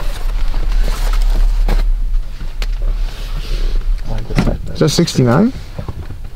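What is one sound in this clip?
A cap rustles as it is handled.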